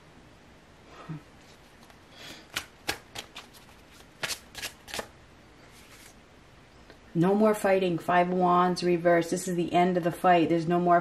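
Playing cards slide and tap against each other.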